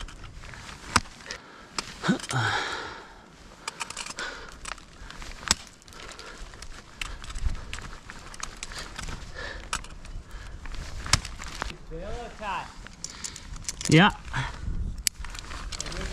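Ice axes strike hard ice with sharp thuds.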